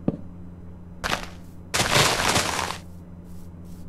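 A block breaks with a crunching burst.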